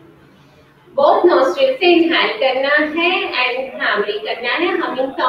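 A woman speaks calmly, heard through an online call.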